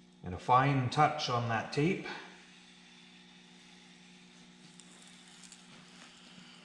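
Plastic sheeting rustles and crinkles.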